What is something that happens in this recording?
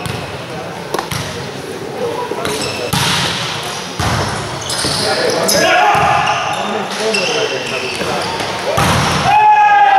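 A volleyball is smacked hard, echoing around a large hall.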